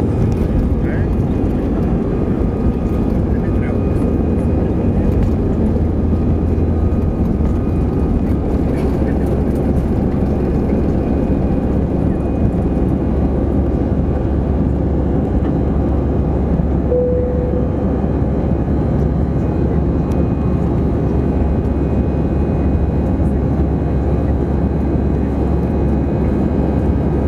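A jet engine roars loudly and steadily from close by.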